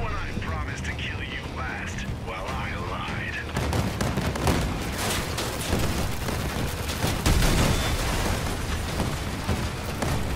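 A buggy engine rumbles and roars over rough ground.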